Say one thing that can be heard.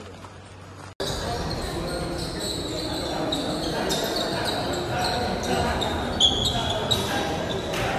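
Quick footsteps patter lightly on a wooden floor.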